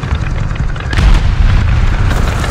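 A shell explodes with a heavy boom.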